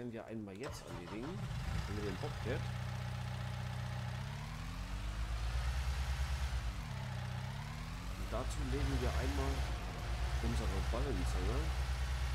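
A small diesel loader's engine rumbles and revs as it drives.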